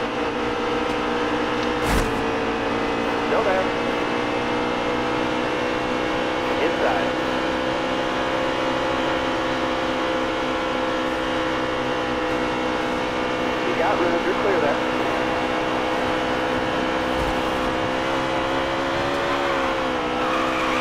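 A V8 stock car engine roars at full throttle in a racing game.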